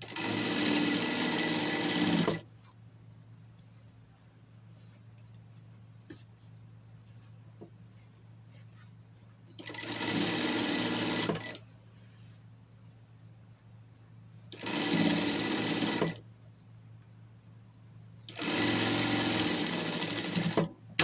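A sewing machine runs in fast bursts of stitching, with pauses between them.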